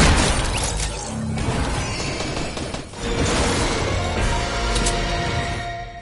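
A cheerful level-up jingle plays.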